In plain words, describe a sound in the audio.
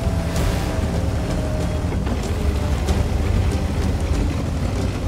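Tank tracks clatter over rough ground.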